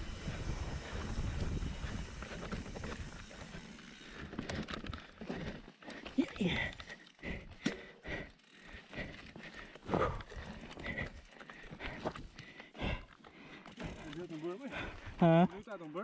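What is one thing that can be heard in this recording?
A bicycle clatters and knocks over bumps and rocks.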